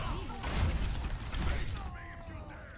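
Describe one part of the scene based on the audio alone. Gunfire and explosions burst in quick succession.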